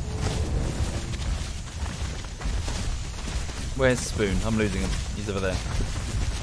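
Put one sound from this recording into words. Paws pad softly over leaves and earth on the forest floor.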